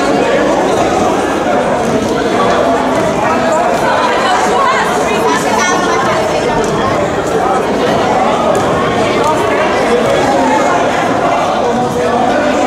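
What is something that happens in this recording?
Players' shoes squeak on a hard floor.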